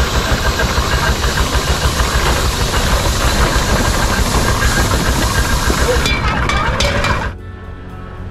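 A small steam engine chugs and hisses close by.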